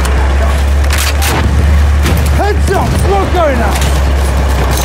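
A machine gun fires in short bursts.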